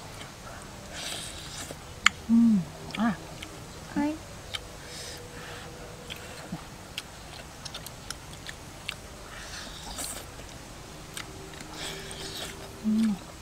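A woman blows on hot food close by.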